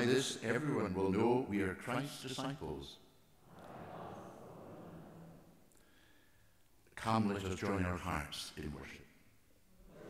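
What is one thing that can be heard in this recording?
A woman reads aloud through a microphone in a large echoing room.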